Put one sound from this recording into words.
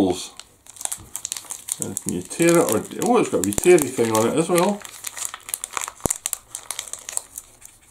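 A plastic sachet crinkles in a man's hands.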